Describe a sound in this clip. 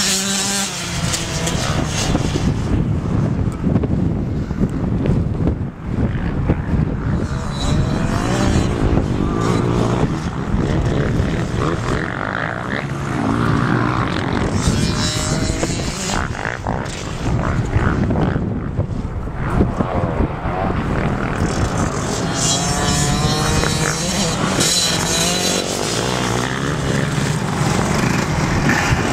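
Small dirt bike engines buzz and rev loudly, rising and falling in pitch.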